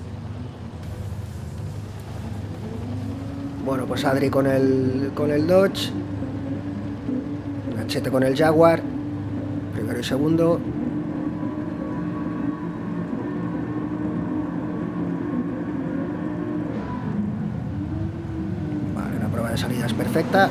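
Racing car engines idle with a steady low rumble.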